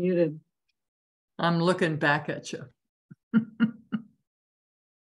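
An older woman talks and laughs over an online call.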